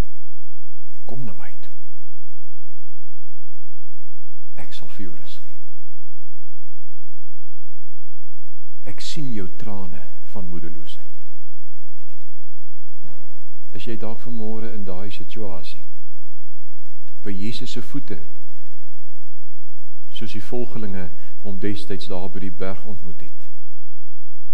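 A middle-aged man speaks calmly into a headset microphone, with pauses between phrases.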